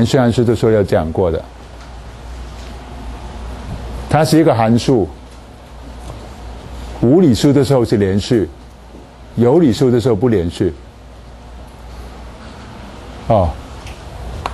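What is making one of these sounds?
A middle-aged man lectures calmly through a clip-on microphone, in bursts with pauses.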